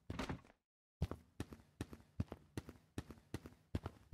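Footsteps tap along a hard pavement at a steady walking pace.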